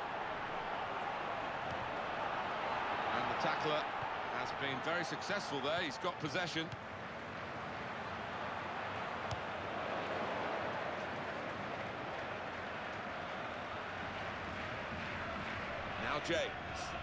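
A stadium crowd murmurs and roars steadily in a large open space.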